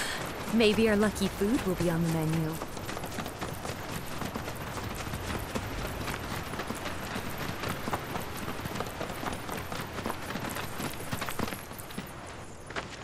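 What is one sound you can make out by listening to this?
Footsteps run quickly over a path.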